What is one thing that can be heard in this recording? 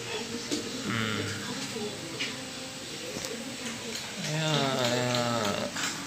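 A puppy laps water from a drip nozzle with soft clicking licks.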